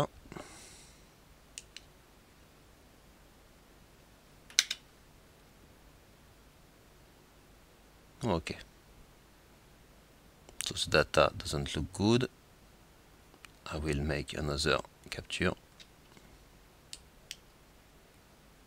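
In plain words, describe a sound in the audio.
A thumb clicks the buttons of a small remote.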